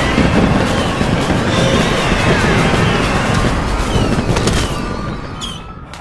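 A loud explosion roars and crackles with fireworks.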